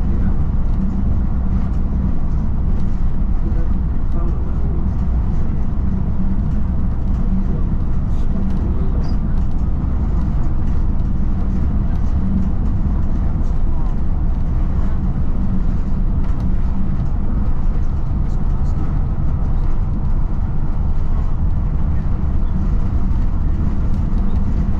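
Tyres hum steadily on a road.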